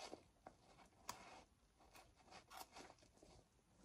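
A small tool scrapes and clicks against a leather seam.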